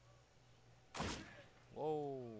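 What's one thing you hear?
A gunshot cracks once.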